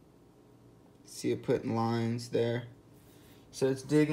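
A folding knife is set down on a wooden board with a light knock.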